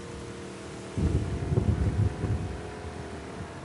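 Water splashes loudly against a boat.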